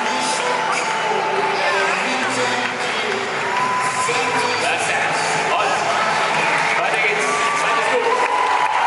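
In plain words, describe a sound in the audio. A large crowd murmurs and chatters in a big echoing arena.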